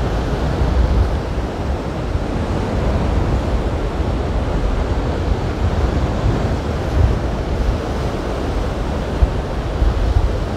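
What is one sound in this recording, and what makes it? Waves wash and break steadily nearby.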